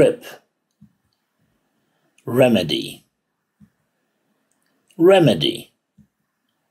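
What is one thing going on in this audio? An elderly man pronounces a single word slowly and clearly into a microphone.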